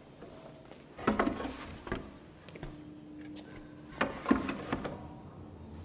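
A large canvas knocks and scrapes against a wooden easel.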